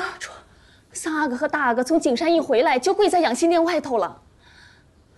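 A young woman pleads urgently, close by.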